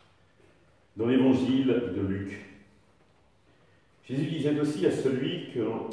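An elderly man speaks calmly into a microphone in a small echoing room.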